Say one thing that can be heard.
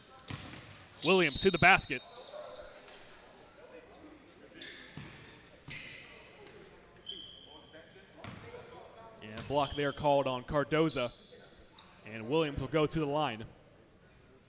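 Young players shout loudly across a large echoing gym.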